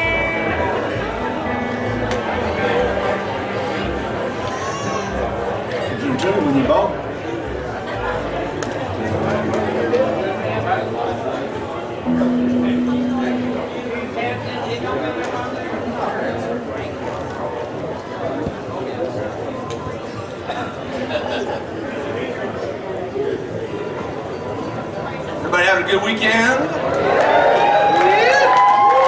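A band plays lively string music through loudspeakers.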